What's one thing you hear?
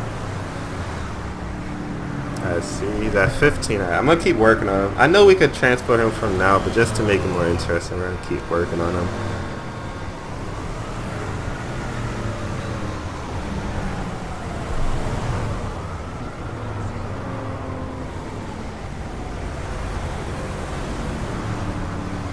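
Traffic engines hum steadily.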